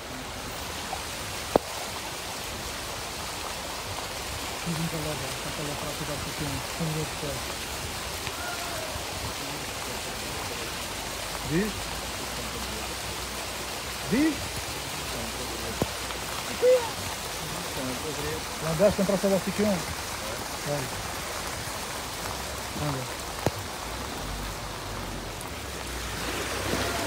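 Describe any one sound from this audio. Floodwater rushes and churns steadily across a street.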